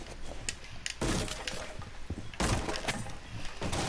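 A rifle fires a few loud shots indoors.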